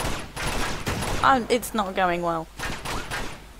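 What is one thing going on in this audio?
A young woman talks with animation into a microphone.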